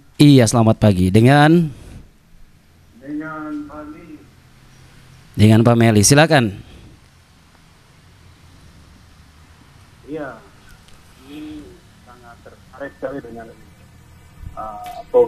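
A second man answers into a microphone.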